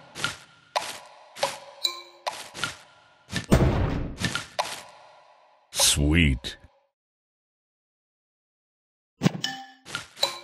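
Bright game chimes and pops ring out in quick bursts as pieces clear.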